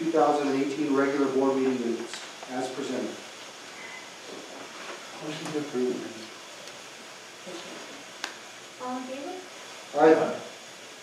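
A man speaks calmly into a microphone in a room with a slight echo.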